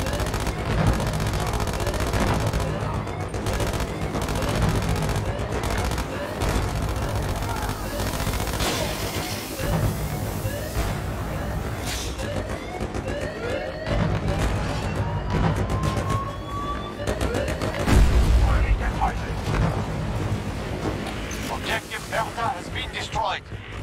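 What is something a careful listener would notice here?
An explosion booms in the distance.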